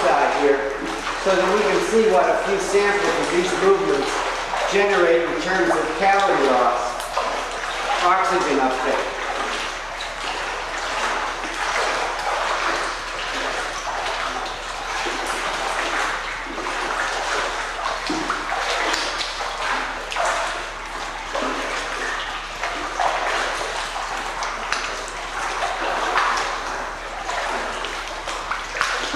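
Water splashes and sloshes as a man wades and pushes through it.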